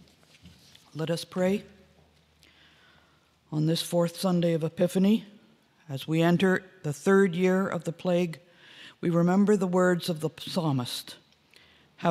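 An elderly woman speaks calmly and slowly into a microphone, close by.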